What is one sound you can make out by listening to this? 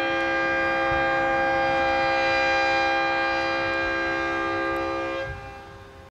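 A loud siren on a rooftop sounds a steady, sustained tone that drops and fades away near the end.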